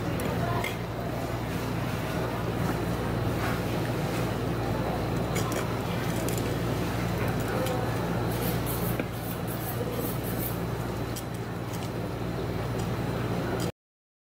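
A knife scrapes and taps on a wooden chopping board.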